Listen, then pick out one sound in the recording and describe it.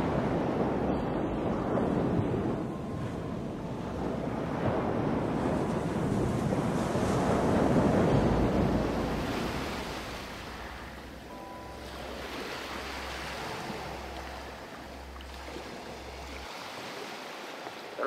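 Water laps and washes steadily.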